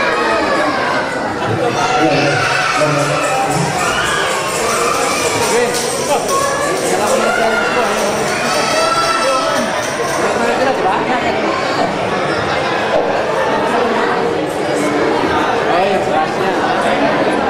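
A large mixed choir of men and women sings together through loudspeakers in an echoing hall.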